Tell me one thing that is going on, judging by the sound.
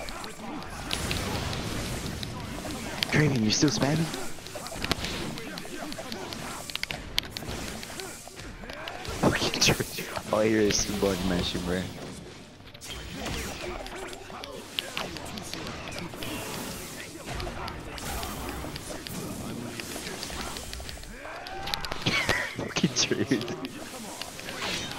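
Blows and slashes thud and whoosh in a fast fight.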